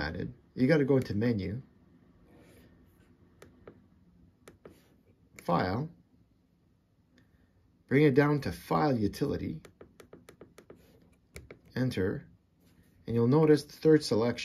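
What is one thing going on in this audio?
Buttons click softly as a finger presses them.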